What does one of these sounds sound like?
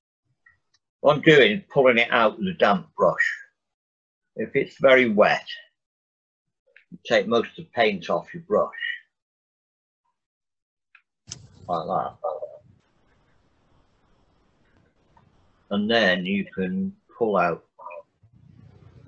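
A man speaks calmly over an online call, in short bursts.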